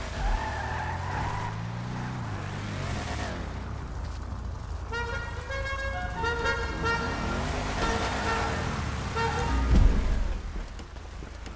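A car engine revs and roars, rising and falling in pitch.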